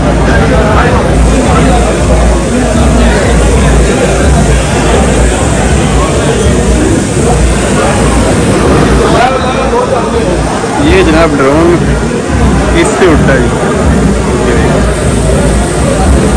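A drone buzzes overhead.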